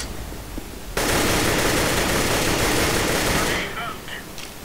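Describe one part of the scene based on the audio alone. An assault rifle fires a burst.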